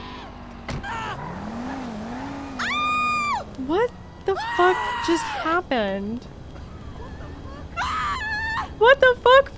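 A young woman talks animatedly into a microphone, close by.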